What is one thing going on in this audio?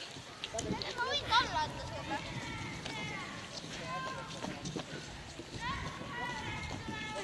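A small crowd cheers and shouts from a distance outdoors.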